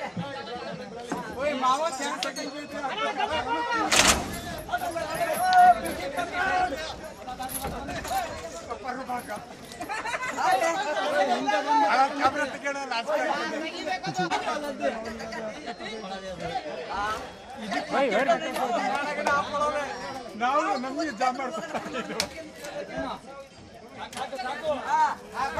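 Several men shout and call out to one another close by, outdoors.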